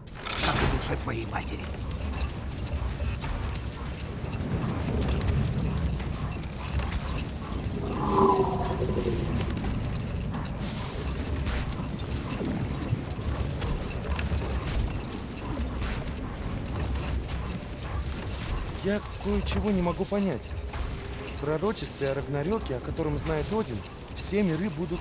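A sled slides steadily over snow.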